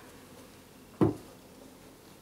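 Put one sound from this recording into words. A man sets a cup down with a knock.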